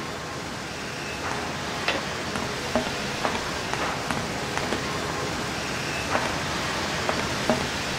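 Footsteps tap on a metal floor.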